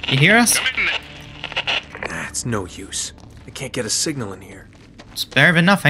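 A man speaks briefly over a radio.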